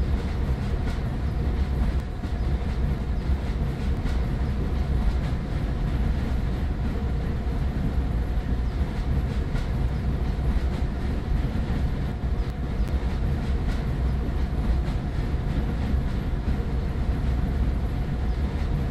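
A toy train rumbles steadily along its track.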